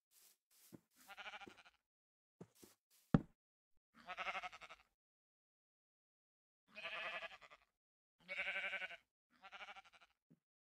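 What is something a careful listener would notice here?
Sheep bleat nearby several times.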